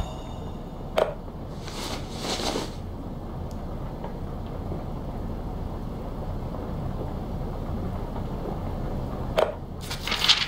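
A short click sounds twice.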